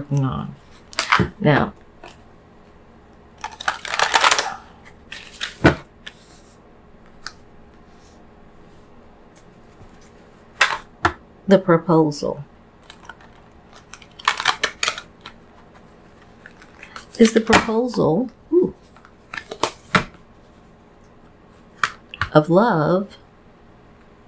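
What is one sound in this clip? A deck of cards riffles and slaps as it is shuffled by hand.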